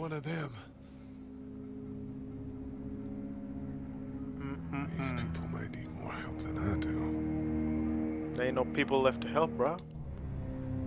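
A man speaks in a low, worried voice.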